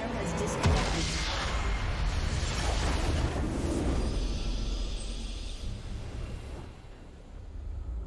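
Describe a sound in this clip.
A game's triumphant victory fanfare swells and then fades.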